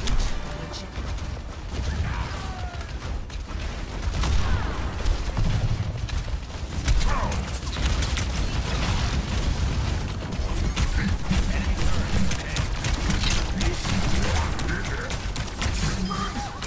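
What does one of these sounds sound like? Explosions boom and crackle nearby.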